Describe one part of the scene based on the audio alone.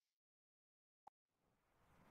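A button click sounds once.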